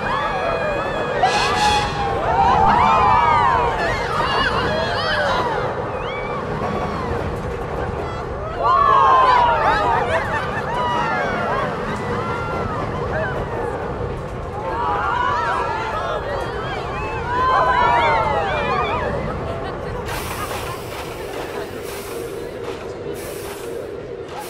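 A roller coaster train rumbles and rattles along its track.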